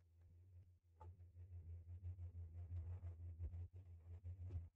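An electrical hum drones steadily.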